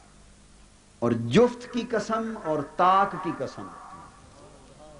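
A man speaks forcefully into a microphone, heard through loudspeakers with an echo.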